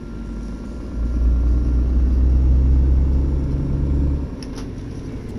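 A truck's engine roars louder as it speeds up.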